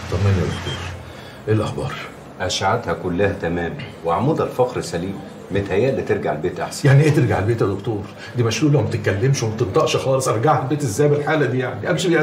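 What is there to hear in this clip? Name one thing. A middle-aged man answers calmly, close by.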